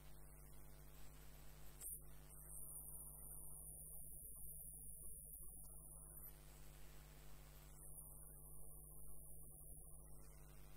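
A turning tool scrapes and cuts into spinning wood, hollowing it.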